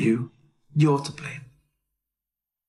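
A young man speaks sharply, close by.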